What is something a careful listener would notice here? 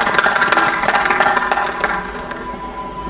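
A small crowd claps.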